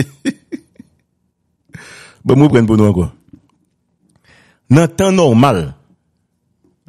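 A man speaks calmly over a phone line in short bursts.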